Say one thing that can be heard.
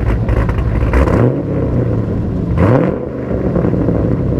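A sports car's engine revs up sharply twice and drops back.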